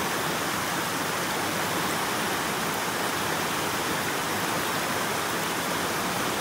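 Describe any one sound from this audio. A shallow stream rushes and splashes over smooth bedrock.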